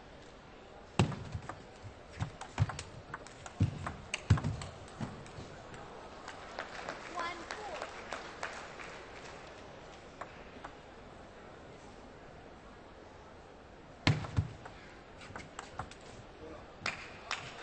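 A ball clicks back and forth across a table tennis table, echoing in a large hall.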